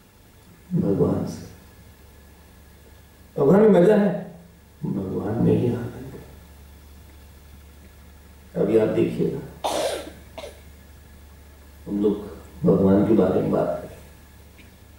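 A man speaks calmly into a microphone in short phrases with pauses.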